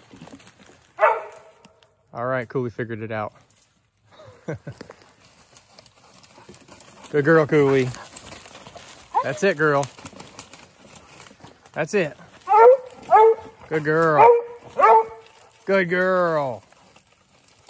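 Young coonhounds bawl and bay in drawn-out howls.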